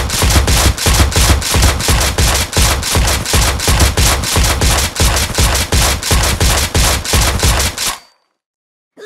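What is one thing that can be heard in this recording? Rapid game gunfire pops and bursts in quick succession.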